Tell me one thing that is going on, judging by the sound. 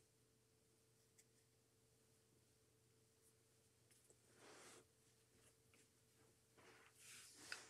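Hands rustle and shift soft decorations and small objects up close.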